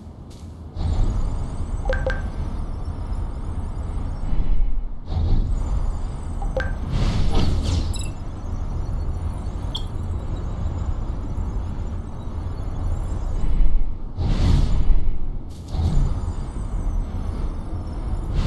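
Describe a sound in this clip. Rocket boosters roar and whoosh as game characters glide over the ground.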